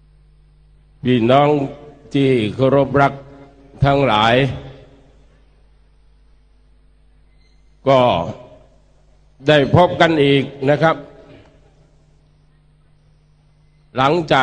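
A middle-aged man speaks forcefully into a microphone through loudspeakers, in bursts with pauses.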